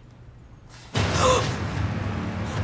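A young woman gasps in alarm.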